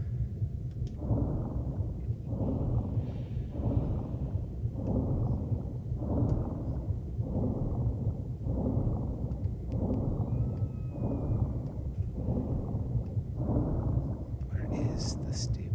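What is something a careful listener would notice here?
Water swishes in a slow, even rhythm of swimming strokes.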